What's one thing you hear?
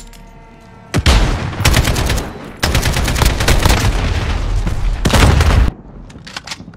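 A gun fires rapid bursts of loud shots.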